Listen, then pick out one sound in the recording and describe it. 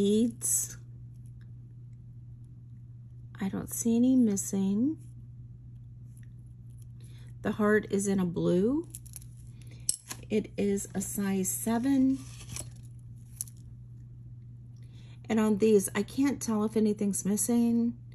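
Metal beads clink softly as they slide along a chain.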